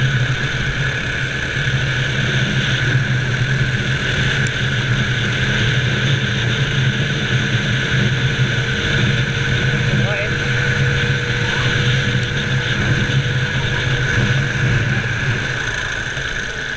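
A kart engine roars loudly and steadily close by.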